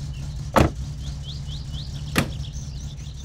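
A car door clicks open and thuds shut.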